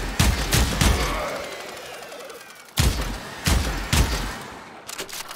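Gunshots boom in loud single blasts that echo away.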